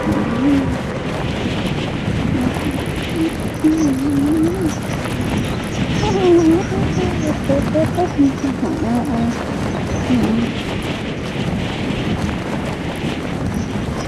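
Wind rushes steadily past a falling skydiver.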